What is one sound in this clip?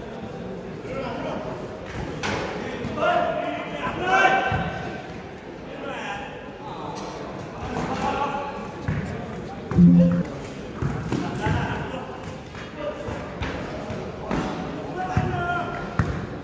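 Young men shout to each other during play.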